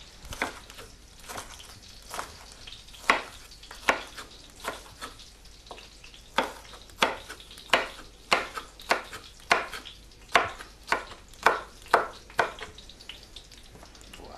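A knife taps steadily on a wooden chopping board.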